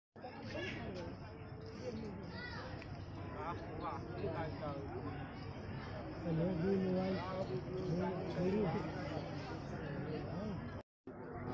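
A crowd of men and women chatter loudly nearby outdoors.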